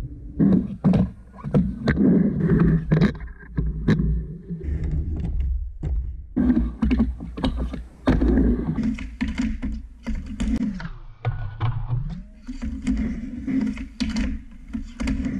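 A skateboard clacks and grinds against a metal coping.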